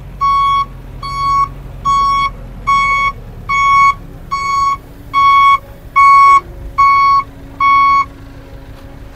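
A truck's reversing alarm beeps in a steady rhythm.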